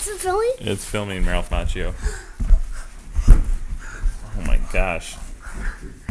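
A young child squeals and shouts playfully nearby.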